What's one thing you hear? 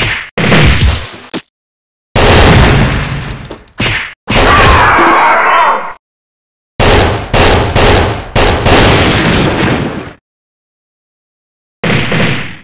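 Punches and kicks land with heavy thuds in short bursts.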